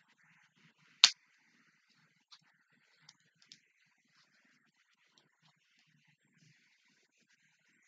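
A plastic bottle crinkles and clicks in a woman's hands.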